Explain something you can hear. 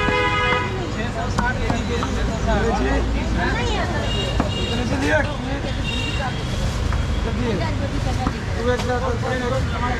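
A cleaver chops through meat on a wooden block.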